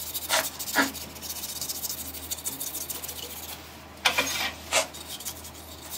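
A tool scrapes against spinning wood with a hissing rasp.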